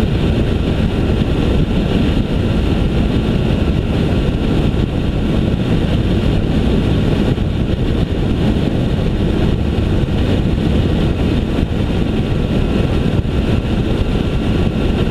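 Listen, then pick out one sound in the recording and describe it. An engine hums steadily while driving along a road.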